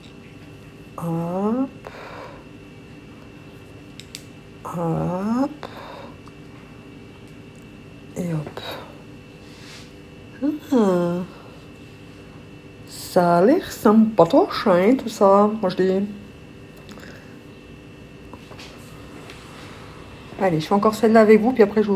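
A middle-aged woman talks calmly and close by, in short bursts.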